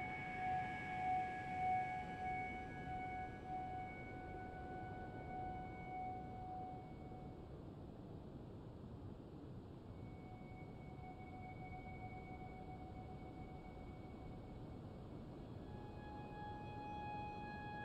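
Wind blows steadily across open sand.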